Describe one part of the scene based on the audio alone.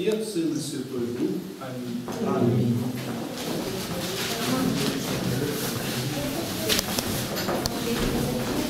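A group of men and women talk and murmur nearby.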